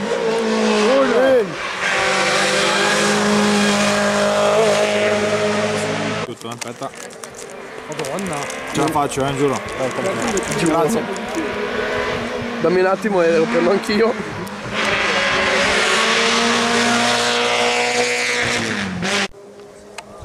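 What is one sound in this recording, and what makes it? Rally car engines roar past at high revs, rising and falling with gear changes.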